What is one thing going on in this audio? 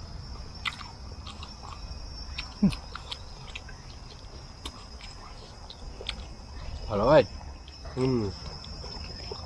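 Men chew and smack their lips loudly while eating.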